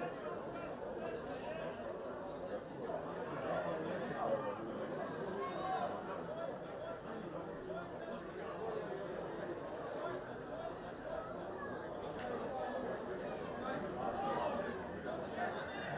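Football players call out to each other across an open pitch.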